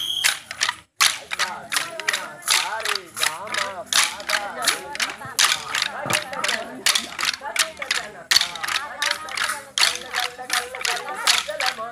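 Wooden sticks clack together in a steady rhythm.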